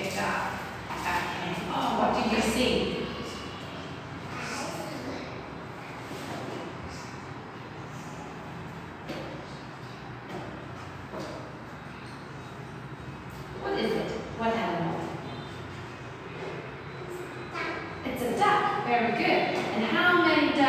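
A young woman speaks slowly and clearly nearby.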